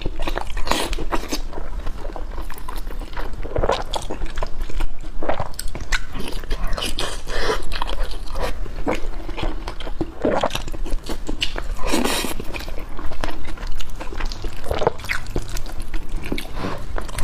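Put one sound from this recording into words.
A young woman chews food wetly and loudly close to a microphone.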